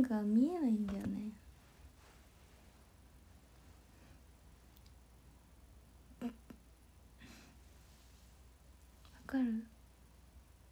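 A young woman speaks briefly and softly, close to the microphone.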